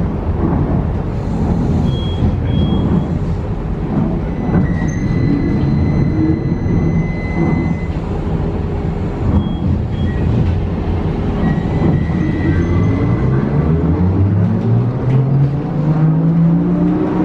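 A vehicle's engine rumbles steadily as it drives, then rises in pitch as it speeds up.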